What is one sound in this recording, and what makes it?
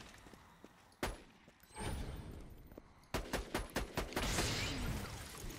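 A sniper rifle fires sharp single shots.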